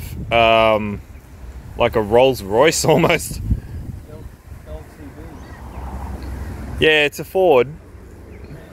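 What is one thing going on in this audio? A middle-aged man talks casually nearby.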